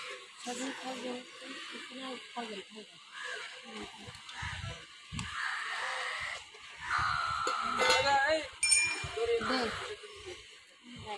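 Women talk nearby in a lively, overlapping way.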